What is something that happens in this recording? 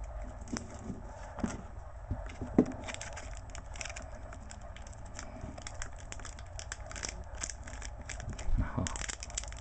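Fingers click and tap against hard plastic cases.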